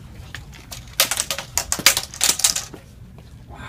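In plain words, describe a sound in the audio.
A plastic hoop clatters and rattles on a hard floor.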